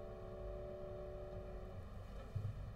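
A cello holds a long final note.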